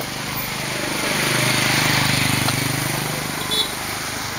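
A motorbike engine hums as it rides past close by.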